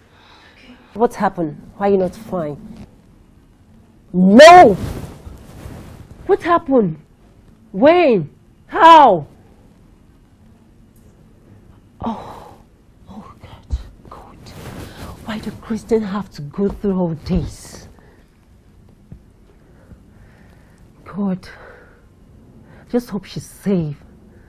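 A young woman sobs and cries out in distress.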